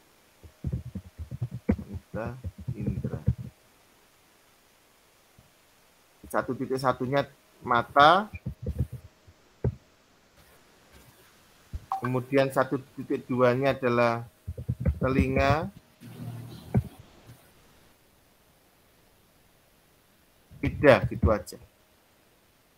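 A young man speaks calmly in short bursts, heard through a computer microphone.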